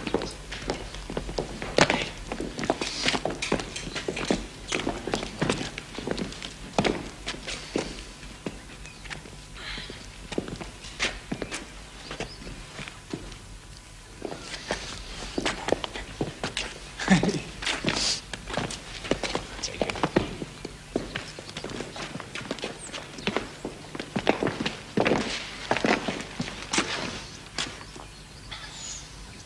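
Adult men talk calmly, close by.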